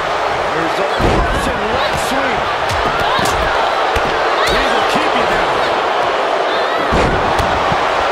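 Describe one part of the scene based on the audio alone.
Heavy bodies slam onto a wrestling ring mat with deep thuds.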